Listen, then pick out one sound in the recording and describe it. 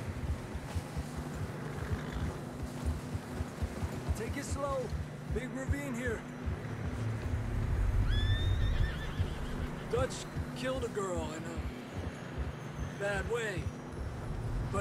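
Horse hooves crunch steadily through deep snow.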